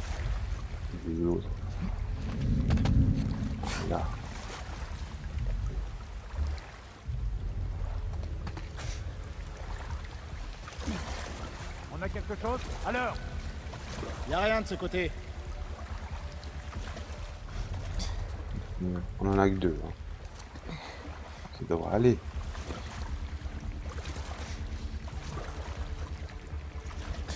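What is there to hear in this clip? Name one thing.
Water sloshes and splashes as someone wades slowly through it.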